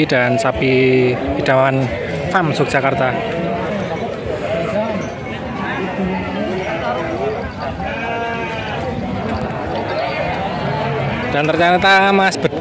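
Several men talk and call out nearby in a lively outdoor crowd.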